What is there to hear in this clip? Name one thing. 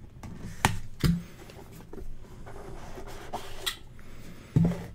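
A cardboard box lid is pried open.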